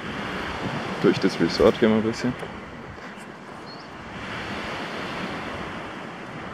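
A light breeze rustles tree leaves outdoors.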